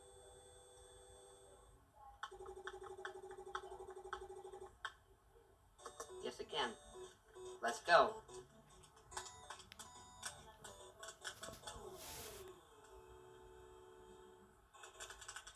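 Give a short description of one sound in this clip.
Chiptune video game music plays with bright beeping notes.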